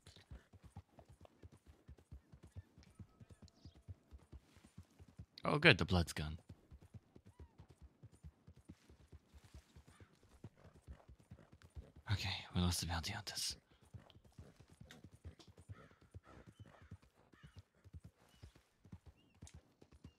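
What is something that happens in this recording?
A horse gallops with steady, rapid hoofbeats on soft ground.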